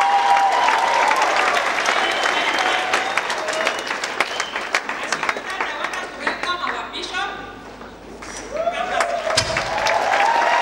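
A crowd sings and cheers loudly in a large echoing hall.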